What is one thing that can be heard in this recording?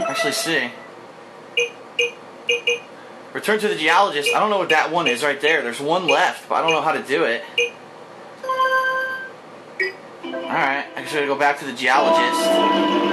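Game menu chimes beep and twinkle in quick bursts.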